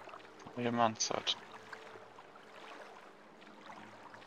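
Water laps and splashes softly as something swims through it.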